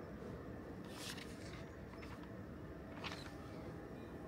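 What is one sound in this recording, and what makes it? A page of a notebook rustles as it turns.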